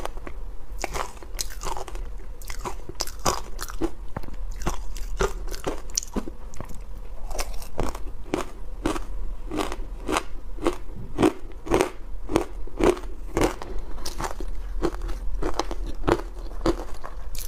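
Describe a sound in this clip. A young woman crunches shaved ice loudly and close to a microphone.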